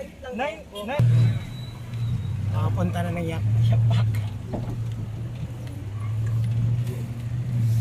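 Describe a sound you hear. A vehicle's engine hums low and steady from inside the vehicle.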